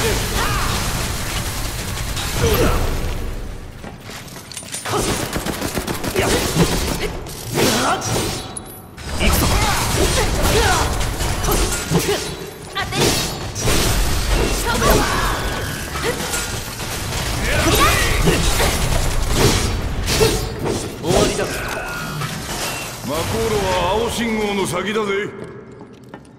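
Metal blades clang and slash in quick, repeated strikes.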